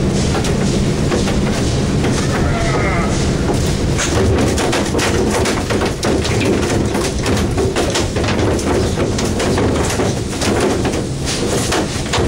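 A boat engine rumbles steadily nearby.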